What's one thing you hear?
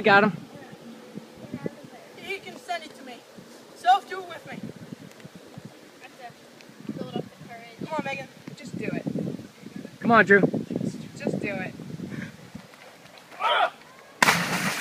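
A teenage boy talks and calls out nearby, outdoors.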